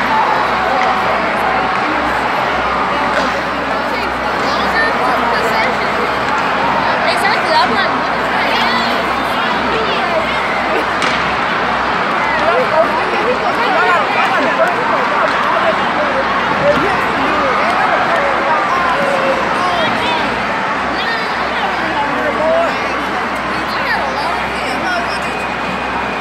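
A crowd murmurs and chatters throughout a large echoing arena.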